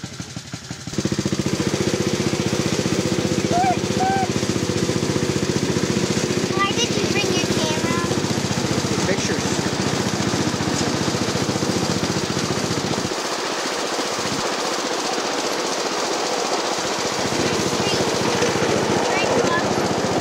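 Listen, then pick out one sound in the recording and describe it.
Train wheels rattle and clack along the rails.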